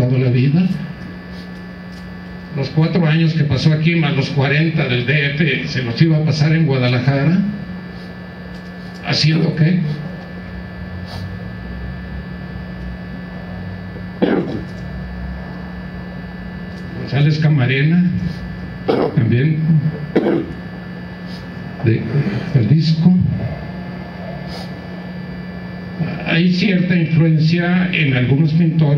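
A woman speaks calmly through a microphone and loudspeaker in a large room, pausing often.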